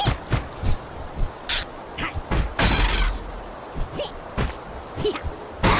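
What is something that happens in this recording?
Weapons strike again and again in a rapid fight.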